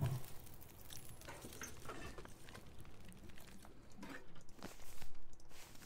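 A wood fire crackles in a stove.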